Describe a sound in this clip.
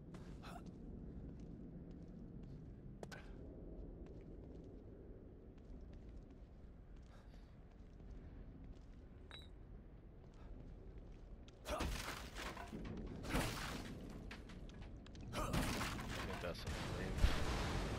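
Footsteps splash softly on wet pavement.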